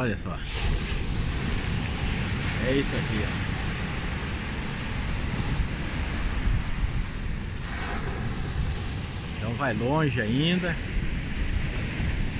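Waves break and wash against rocks nearby.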